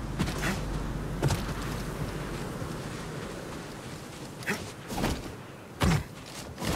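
Footsteps crunch on sand and gravel as a man runs.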